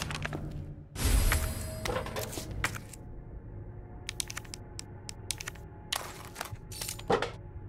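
Short game menu clicks tick now and then.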